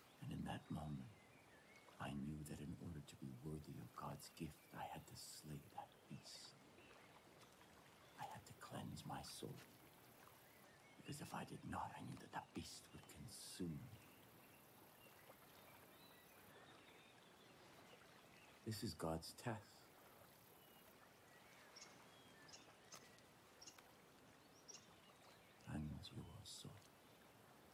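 A man speaks slowly and calmly, close by.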